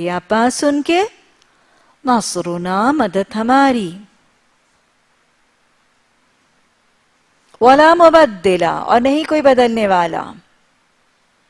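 A woman speaks calmly and slowly into a close microphone, with long pauses.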